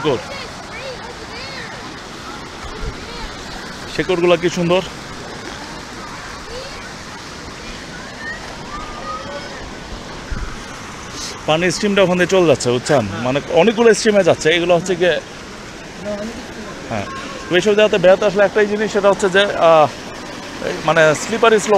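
Shallow water ripples and splashes steadily over rocks.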